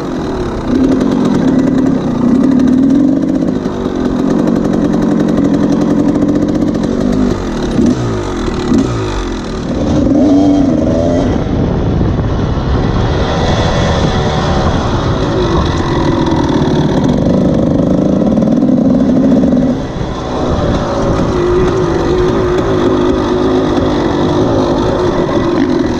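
A dirt bike engine revs and roars up close, rising and falling in pitch.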